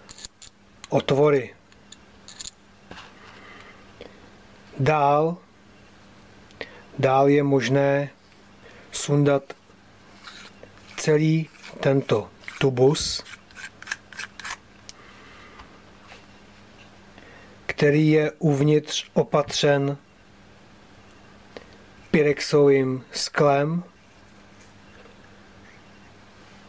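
Small metal parts click and scrape together as they are handled.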